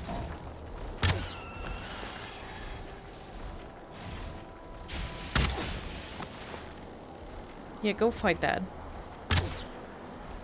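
A pickaxe strikes rock with sharp, ringing blows.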